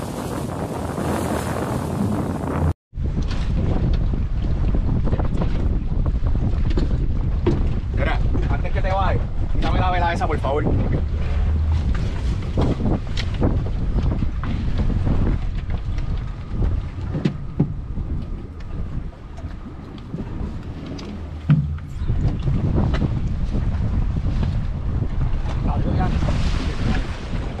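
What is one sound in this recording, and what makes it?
Wind buffets loudly outdoors on open water.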